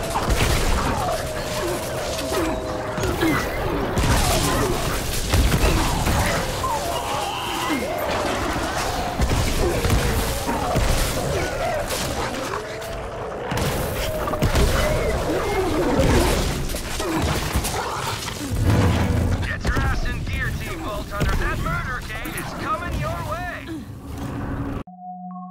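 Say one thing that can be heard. Electric gunfire crackles and zaps in rapid bursts.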